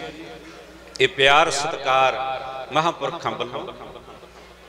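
An elderly man sings loudly through a microphone.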